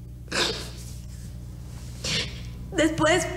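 A young woman sniffles and breathes in sharply.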